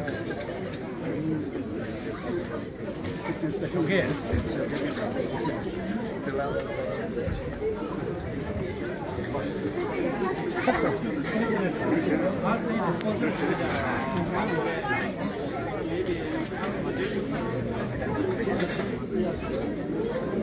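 A large crowd of men and women chatters all at once in a big echoing hall.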